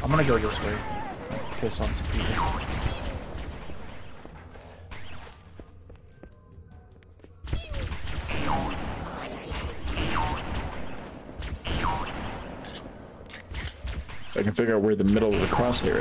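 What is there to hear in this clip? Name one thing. Gunfire from a video game rattles in bursts.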